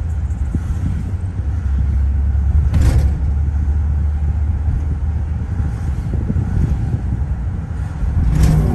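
A car engine hums with a steady low rumble.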